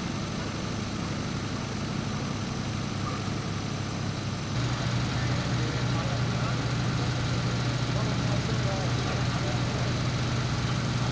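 A fire engine's motor idles with a steady low rumble.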